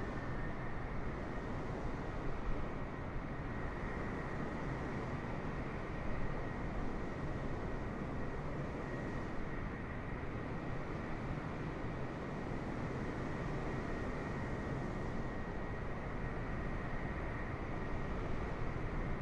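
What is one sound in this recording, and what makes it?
A jet airliner's engines roar steadily as it rolls down a runway.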